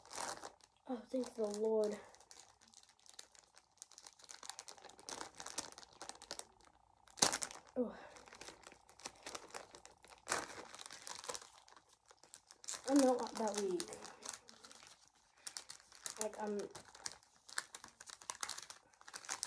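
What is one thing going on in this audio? A plastic bag crinkles and rustles as it is pulled open.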